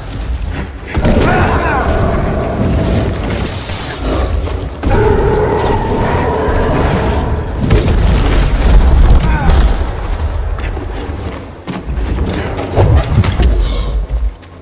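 A large creature roars loudly.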